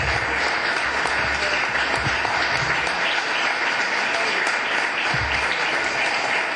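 A small crowd applauds steadily.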